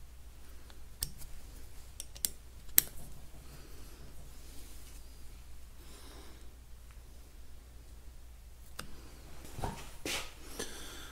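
A metal pick clicks and scrapes against a metal ring.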